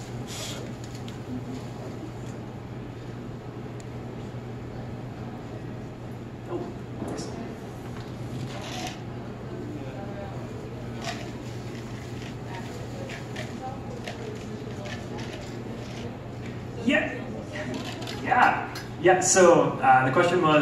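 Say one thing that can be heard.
A man speaks into a microphone over loudspeakers in a large echoing room.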